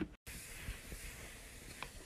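A hand wipes a surface with a damp cloth.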